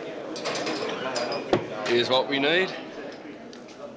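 A glass knocks on a table.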